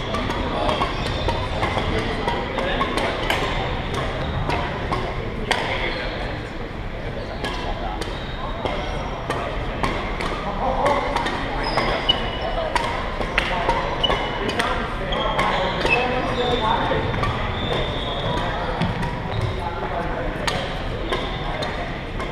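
Badminton rackets strike a shuttlecock with sharp pops.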